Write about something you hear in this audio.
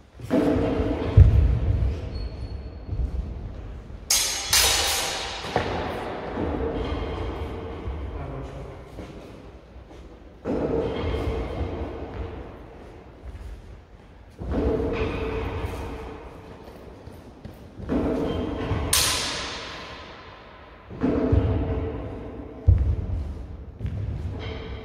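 Feet stamp on a wooden floor.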